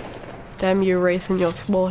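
Gunshots ring out from a video game.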